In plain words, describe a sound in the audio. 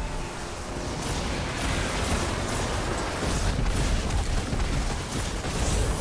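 A weapon fires rapid zapping bursts.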